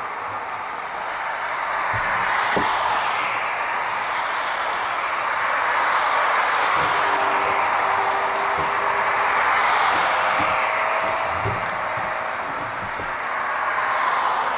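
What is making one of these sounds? A tram rolls along the street with a low rumble.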